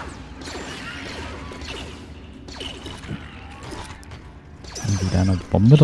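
Laser blasters fire in quick zapping bursts.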